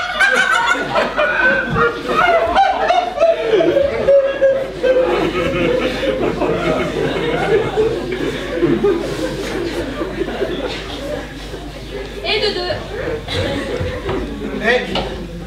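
A man speaks clearly and theatrically on a stage, heard from the audience in a large hall.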